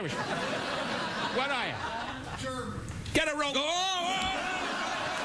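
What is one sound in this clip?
An elderly man speaks loudly and with animation into a microphone.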